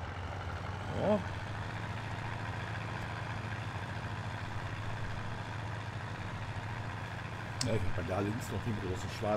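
A middle-aged man speaks briefly into a close microphone.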